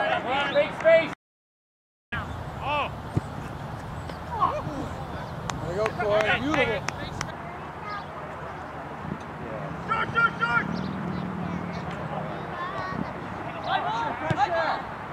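Players shout across an open field outdoors.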